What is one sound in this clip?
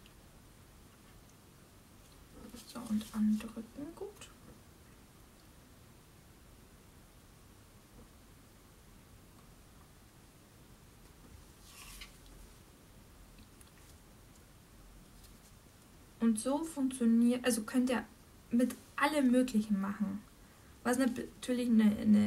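A stiff paper card slides and rustles across a wooden table.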